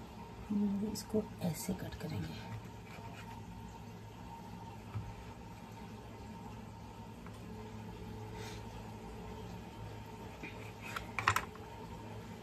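A knife taps on a wooden board.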